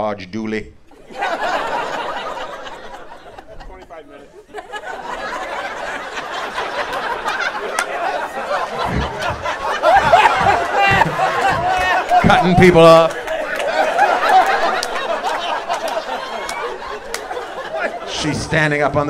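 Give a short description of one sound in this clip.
An audience laughs loudly.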